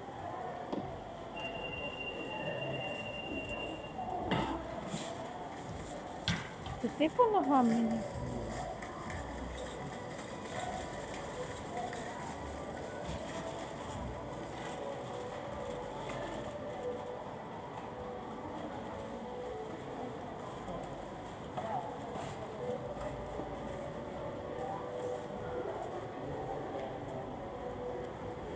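A crowd murmurs in the distance in a large echoing hall.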